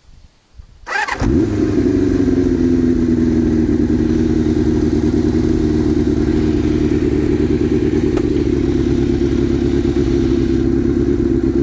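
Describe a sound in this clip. A motorcycle engine starts and idles with a loud, steady rumble.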